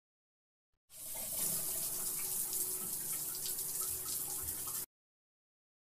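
A syringe hisses softly.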